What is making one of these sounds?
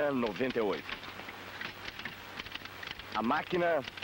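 Typewriter keys clack in quick taps.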